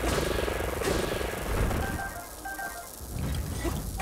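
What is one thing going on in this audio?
A blast booms.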